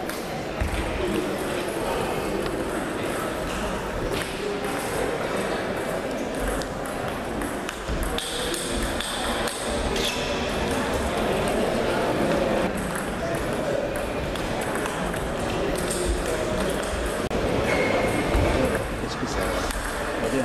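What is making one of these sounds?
A table tennis ball clicks back and forth across a table and off paddles.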